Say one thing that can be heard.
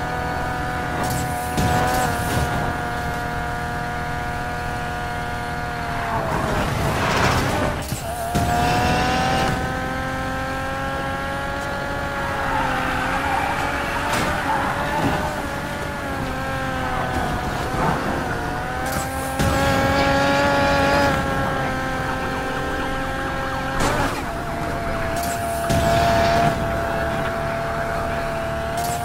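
Exhaust pops and crackles as a car slows down.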